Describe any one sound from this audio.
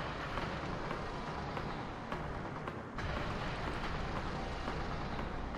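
Footsteps thud on a hard floor at a steady pace.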